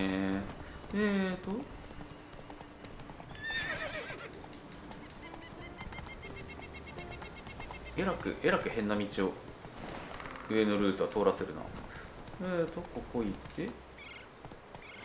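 A horse gallops over soft ground.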